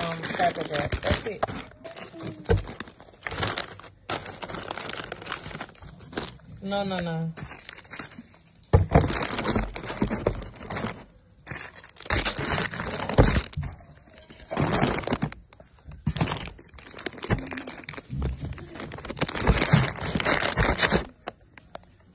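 Plastic snack bags crinkle and rustle as they are handled.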